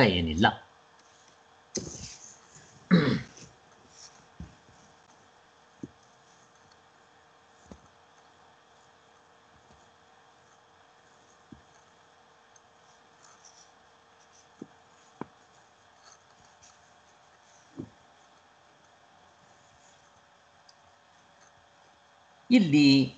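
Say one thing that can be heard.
A man speaks briefly and calmly over an online call.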